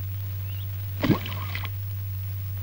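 A stone splashes into water.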